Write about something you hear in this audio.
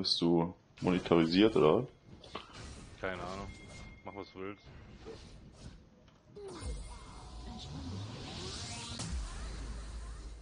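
Fantasy battle sound effects clash and whoosh as spells are cast.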